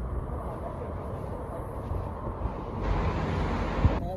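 Cars drive past on a road below.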